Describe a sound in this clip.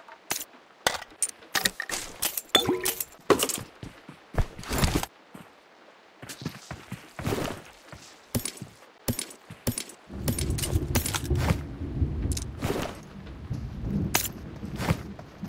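Short clicks and clinks sound as items are picked up.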